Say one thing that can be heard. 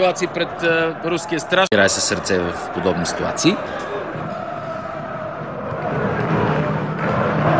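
A stadium crowd murmurs and chants in the distance.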